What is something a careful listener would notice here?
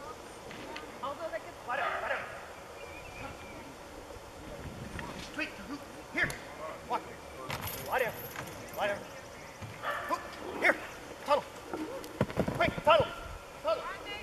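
A man calls out commands to a dog, outdoors at a distance.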